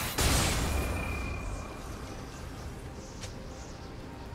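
Fighting effects whoosh and clash.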